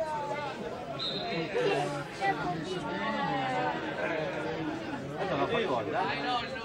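Spectators at an outdoor football match shout and chatter.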